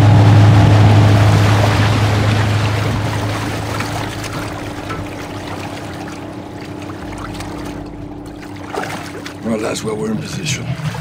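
A boat motor hums low and slowly fades away.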